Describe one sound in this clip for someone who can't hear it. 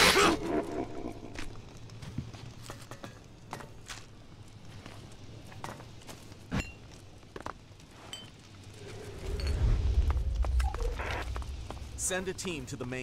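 Footsteps thud across wooden planks and rubble.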